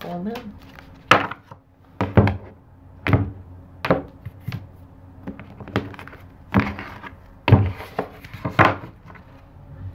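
Playing cards are tapped and shuffled on a table.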